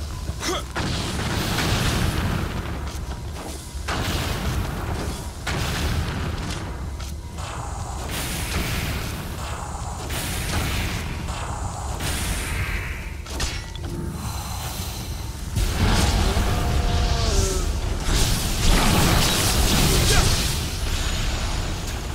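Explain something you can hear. A blade whooshes and strikes repeatedly.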